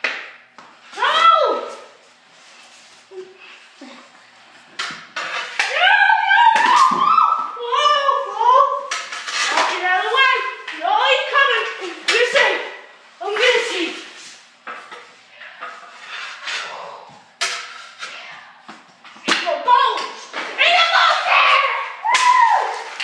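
Young boys shout and talk excitedly nearby indoors.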